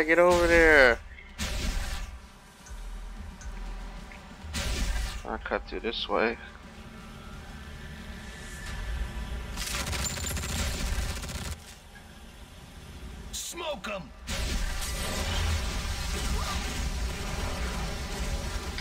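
Energy blasts whoosh and zap in quick bursts.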